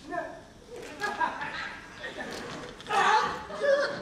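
A young woman cries out in pain.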